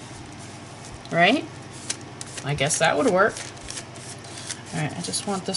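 Hands rub and smooth paper with a soft rustle.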